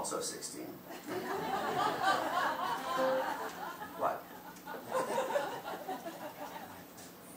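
An acoustic guitar is plucked.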